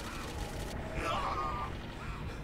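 A crackling magical blast bursts and hums.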